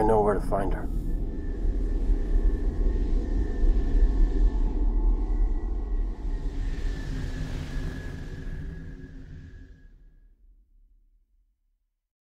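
A spacecraft engine rumbles low and fades away.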